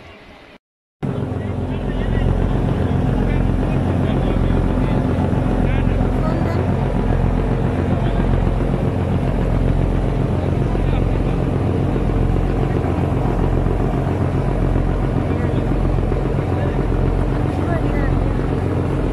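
Water churns and splashes against a boat's hull.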